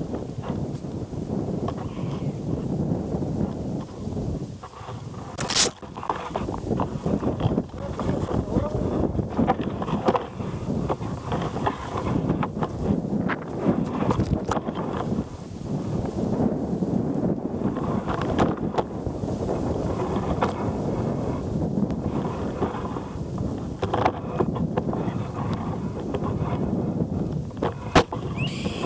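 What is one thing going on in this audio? Strong wind blows outdoors in loud, rumbling gusts.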